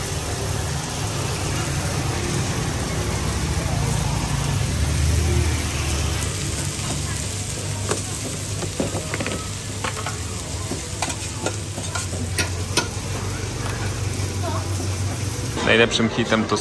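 Meat sizzles loudly on a hot griddle.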